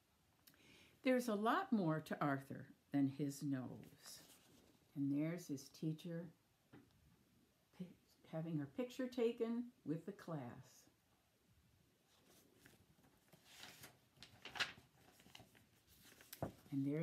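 An elderly woman reads aloud calmly and close by.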